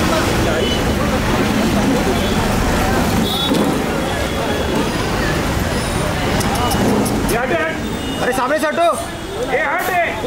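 A crowd of adults murmurs and talks outdoors.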